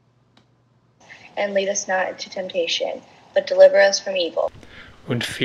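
A young girl speaks calmly through an online call.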